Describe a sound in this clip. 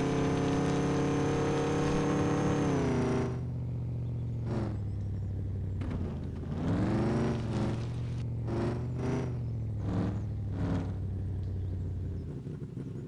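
A truck engine roars loudly, its pitch dropping and then revving up and down in bursts.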